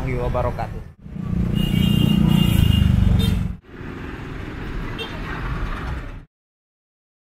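Traffic rumbles along a street outdoors.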